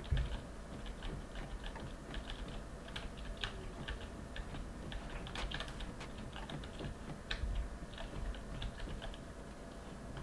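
Footsteps thud on a creaky wooden floor.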